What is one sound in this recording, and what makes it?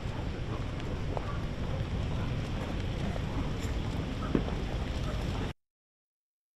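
Several men walk with boots stepping on pavement outdoors.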